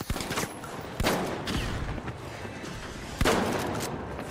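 A shotgun fires with loud blasts.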